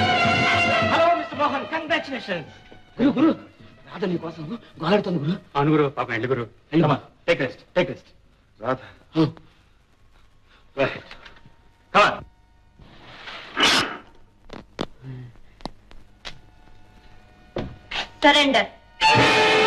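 Young men talk with animation, close by.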